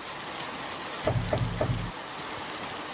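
A piano plays a few soft notes nearby.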